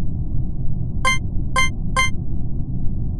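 A game beeps with short clicks as a vote is chosen.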